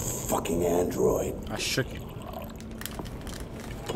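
Water pours from a jug into a glass.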